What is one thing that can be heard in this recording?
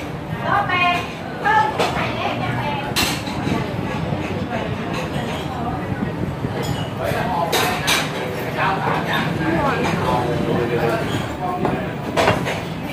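A fork clinks on a plate.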